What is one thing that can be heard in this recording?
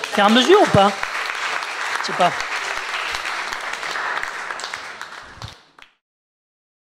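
A small group of people applaud.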